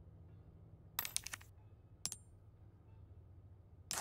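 Game menu sounds click and chime as items are selected.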